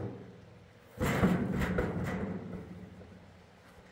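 A large metal tank scrapes and thuds as it is tipped over on the ground.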